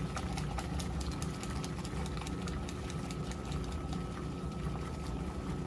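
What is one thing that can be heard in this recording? A washing machine agitator churns and sloshes water and clothes back and forth.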